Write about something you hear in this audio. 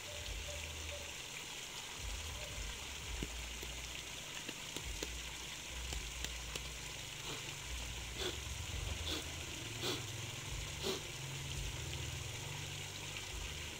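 A shallow stream flows and trickles over stones.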